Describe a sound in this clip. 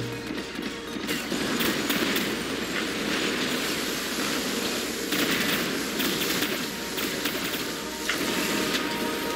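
Explosions boom and crackle nearby.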